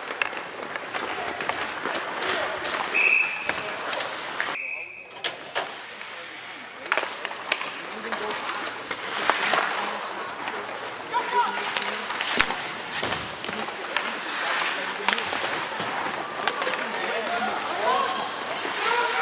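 Spectators chatter and call out in a large echoing rink.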